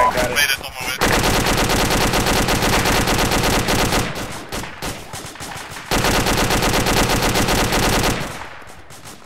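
An automatic rifle fires in long bursts.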